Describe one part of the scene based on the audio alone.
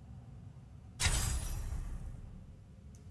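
A game menu plays a sudden fiery whoosh as an item is equipped, fading over about a second.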